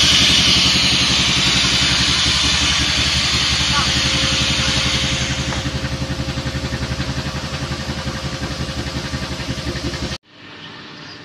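A vacuum pump roars loudly with a fast pulsing throb, then stops abruptly.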